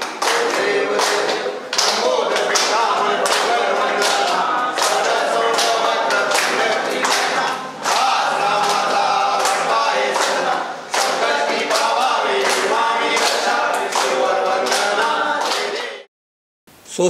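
People clap their hands in a steady rhythm.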